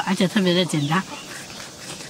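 A young woman speaks briefly close by.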